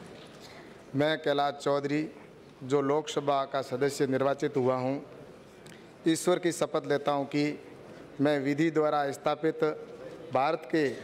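A man reads out formally and loudly through a microphone in a large hall.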